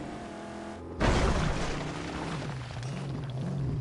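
Tyres skid and scrape over sand.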